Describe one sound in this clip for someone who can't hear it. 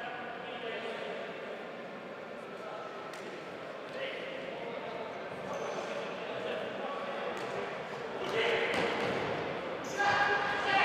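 Shoes squeak sharply on a hard indoor court.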